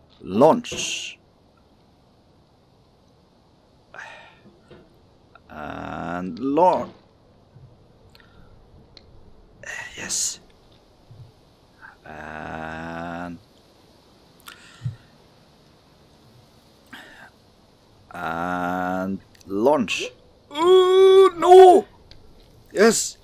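A young man talks with animation and groans close to a microphone.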